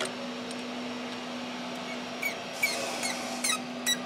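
A metal tool taps and scrapes against metal.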